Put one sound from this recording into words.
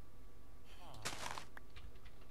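Sugar cane stalks in a video game break with a crisp, rustling crunch.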